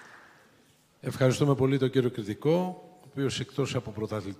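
An older man speaks through a microphone over loudspeakers in a large hall.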